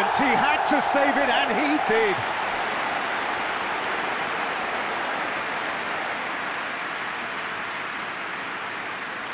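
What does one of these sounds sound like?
A large stadium crowd roars steadily, slowly fading a little.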